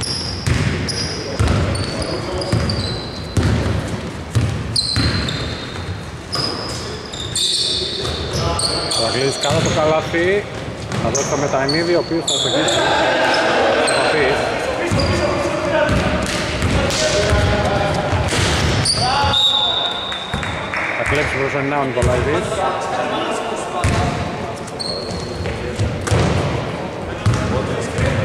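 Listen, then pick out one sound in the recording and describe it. Sneakers squeak sharply on a wooden court, echoing in a large hall.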